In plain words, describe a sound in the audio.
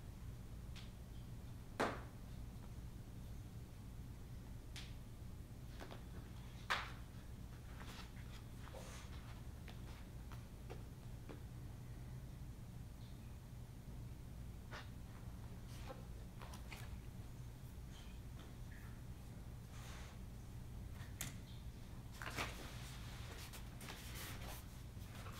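Paper pages of a book rustle as they are handled.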